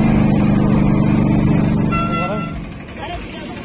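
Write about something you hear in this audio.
An auto-rickshaw engine rattles and throbs up close.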